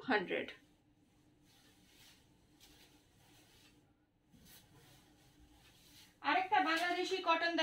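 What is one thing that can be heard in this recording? Cloth rustles as it is handled.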